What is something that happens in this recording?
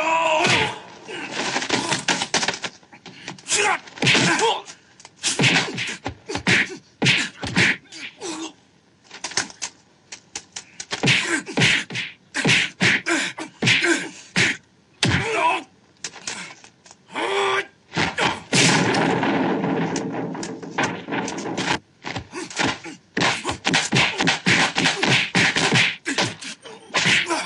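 Punches and kicks land with sharp, loud thwacks, fast and many times.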